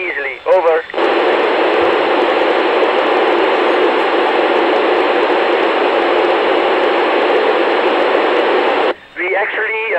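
Radio static hisses loudly.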